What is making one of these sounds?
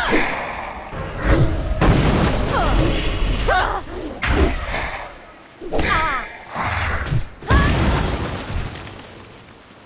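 Spell effects crackle and whoosh during a fight.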